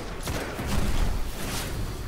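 A loud blast booms.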